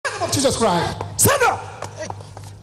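A man groans while lying on the floor.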